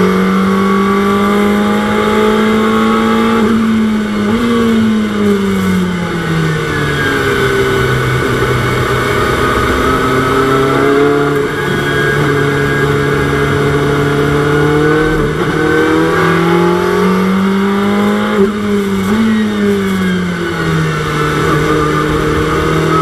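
A racing car engine roars steadily, its pitch rising and dropping with each gear change.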